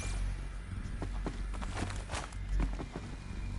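Footsteps tap lightly on a hard floor.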